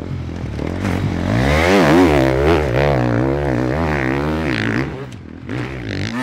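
A dirt bike engine revs hard, rising and falling in pitch.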